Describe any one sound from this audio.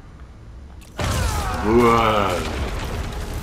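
Wooden boards smash and splinter loudly.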